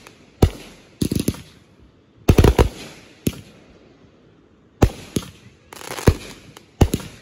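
Fireworks crackle in quick bursts.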